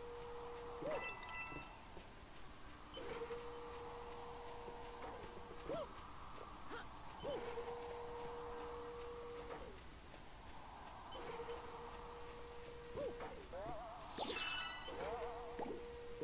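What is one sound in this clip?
Short springy jump sounds boing from a game character.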